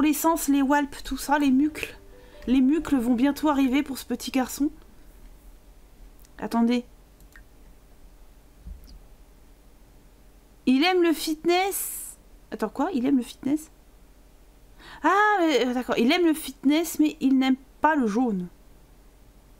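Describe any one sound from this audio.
A young woman talks animatedly into a close microphone, with pauses.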